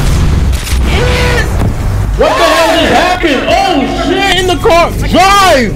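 Gunfire and explosions crack and boom from a video game.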